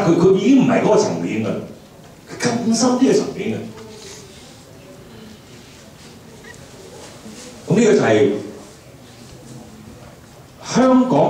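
A middle-aged man speaks with animation into a microphone, heard through a loudspeaker in a room, with pauses between phrases.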